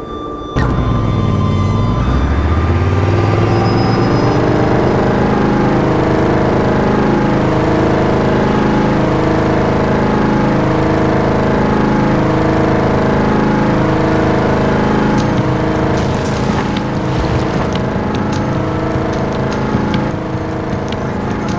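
A vehicle engine roars steadily.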